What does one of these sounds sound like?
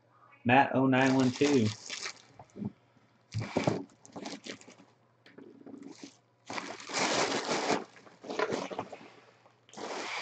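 Plastic wrapping crinkles and rustles as hands handle it.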